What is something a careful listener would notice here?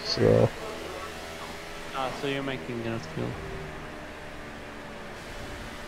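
A race car engine roars at high speed.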